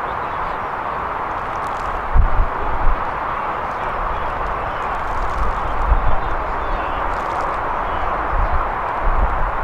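Wind blows steadily across an open field outdoors.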